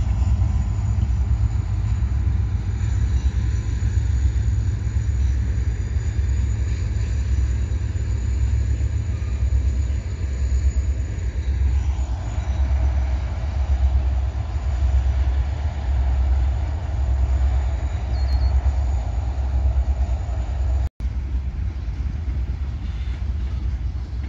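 A freight train rumbles steadily past in the distance.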